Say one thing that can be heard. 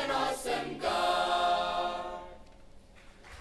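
A choir of young men and women sings together through microphones in a large hall.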